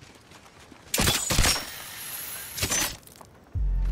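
A grappling hook fires and whirs as it pulls taut.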